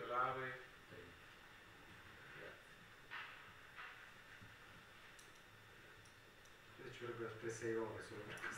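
An elderly man speaks calmly into a nearby microphone, with pauses.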